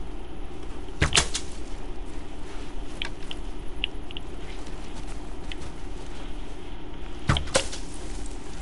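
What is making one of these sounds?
A bowstring twangs sharply as an arrow is shot.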